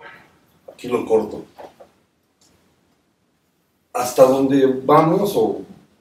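An elderly man speaks with expression, reading out.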